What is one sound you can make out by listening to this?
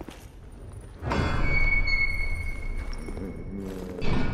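A heavy metal gate grinds open.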